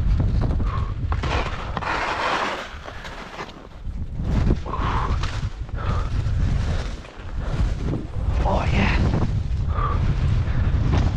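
Skis hiss and swish through deep powder snow.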